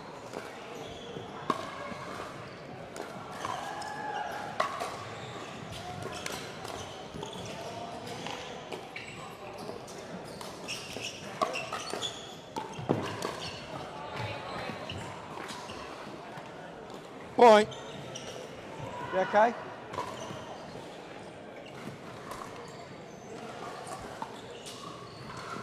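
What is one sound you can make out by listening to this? A large indoor hall echoes with distant chatter and play.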